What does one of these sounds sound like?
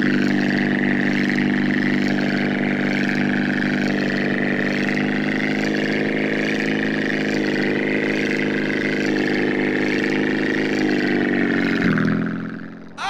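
A propeller plane engine drones loudly and steadily.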